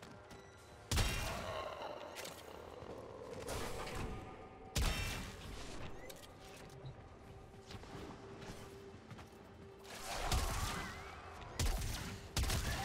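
Gunfire bursts and explosions boom in loud, sudden blasts.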